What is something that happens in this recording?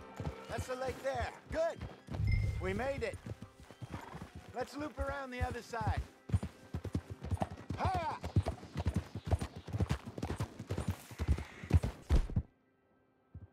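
A horse's hooves clop steadily on rocky ground.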